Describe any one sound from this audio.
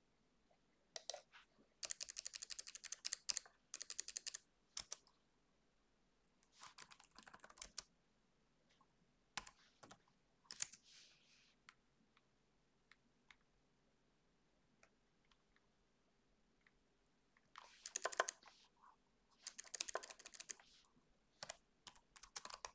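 Computer keys clatter in quick bursts of typing.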